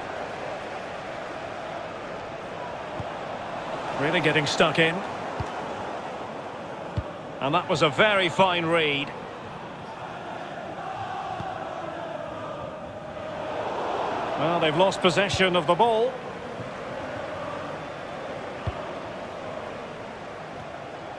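A large stadium crowd murmurs and hums steadily.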